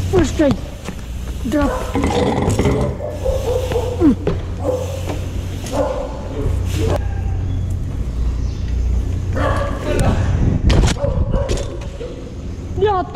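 Bike tyres roll over a hard floor.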